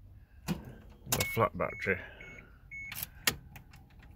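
Keys jingle on a key ring.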